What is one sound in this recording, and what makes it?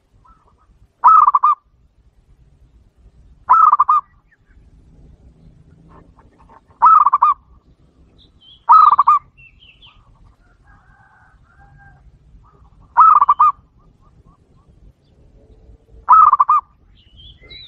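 A dove coos in short, loud, rolling calls, close by.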